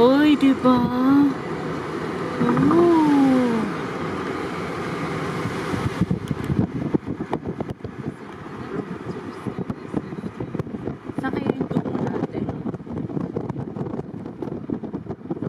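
A car drives along a road, its engine and tyres humming steadily.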